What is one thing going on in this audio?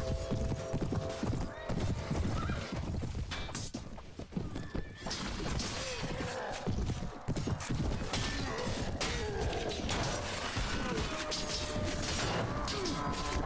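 Many horses gallop over the ground with pounding hooves.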